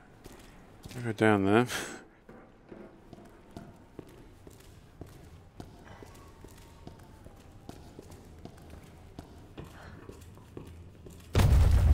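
Footsteps clank on metal stairs and a hard floor.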